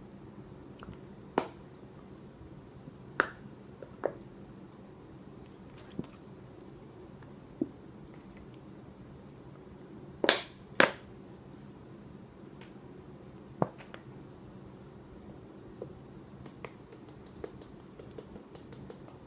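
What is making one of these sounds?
A young man gulps down a drink.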